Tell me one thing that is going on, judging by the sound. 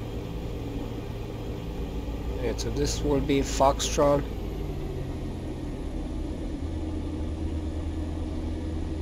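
A small propeller plane's engine drones steadily while taxiing.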